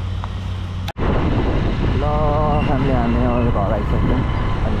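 A motorcycle engine runs while riding along a road.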